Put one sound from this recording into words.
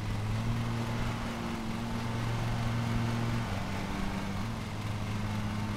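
A lawn mower engine drones steadily, dropping slightly in pitch partway through.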